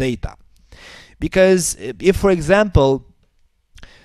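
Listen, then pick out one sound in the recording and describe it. A man speaks calmly into a close headset microphone.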